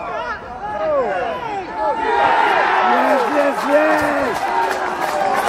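Players shout and cheer excitedly across an open field.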